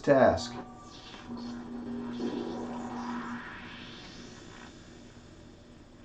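A magical shimmer swells and slowly fades.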